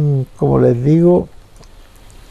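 A middle-aged man speaks calmly into a clip-on microphone, close by.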